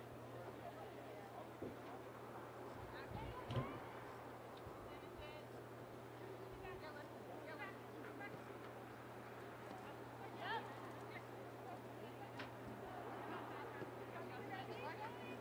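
Young women shout to each other across an open field, some distance away.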